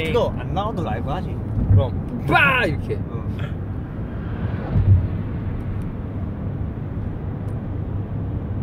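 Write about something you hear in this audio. A car engine rumbles low and steady inside the car.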